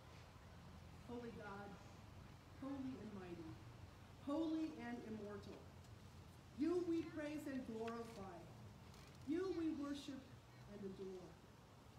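An elderly woman speaks with feeling through a microphone.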